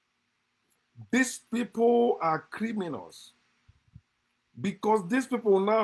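A man speaks with animation close to a microphone, pausing between phrases.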